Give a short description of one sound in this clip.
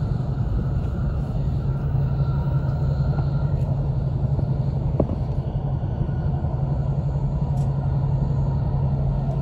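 A train hums and rumbles steadily as it moves along the track.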